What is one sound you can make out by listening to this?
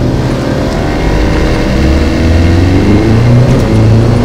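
A motorcycle engine revs up and pulls away, growing louder.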